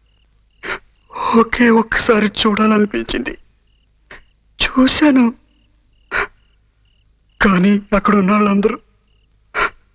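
A man speaks tearfully and with emotion, close by.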